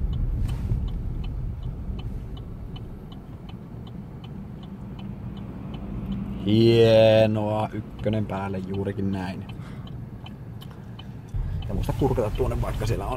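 A car engine rumbles low and steadily, heard from inside the car.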